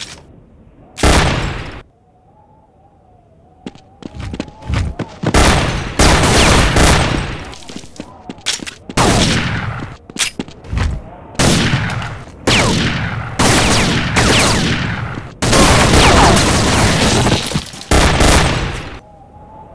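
Rapid gunfire bursts loudly, echoing between walls.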